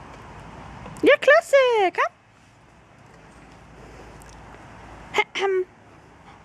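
A large dog barks loudly in short, high bursts.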